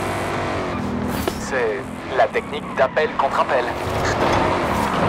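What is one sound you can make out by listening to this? Tyres screech as a car slides through a turn.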